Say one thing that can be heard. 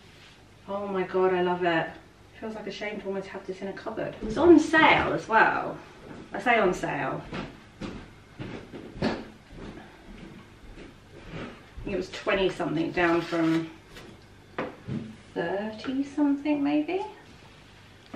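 A woman talks calmly and close by, as if explaining.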